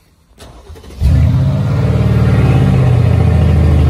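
A car engine starts up with a loud roar.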